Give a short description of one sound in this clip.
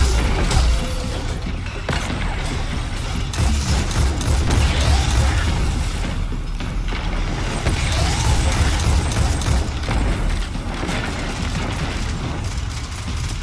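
Gunshots fire in rapid bursts with heavy booming thuds.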